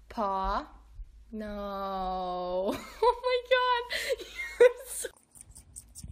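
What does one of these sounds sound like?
A small dog yowls and whines in high, drawn-out cries.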